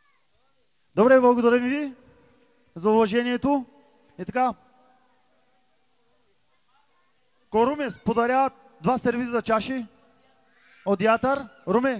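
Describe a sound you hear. A man speaks loudly and with feeling into a microphone, amplified through loudspeakers.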